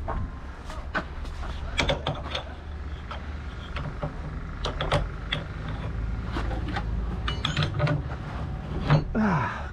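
Metal clanks as a hose coupling is fitted to a tanker.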